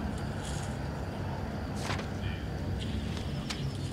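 Paper pages rustle as a book is leafed through.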